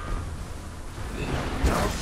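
Magic attacks zap and whoosh in a fight.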